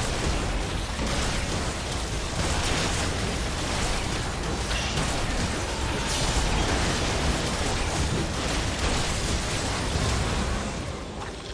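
Game combat sounds and spell effects crash and crackle rapidly.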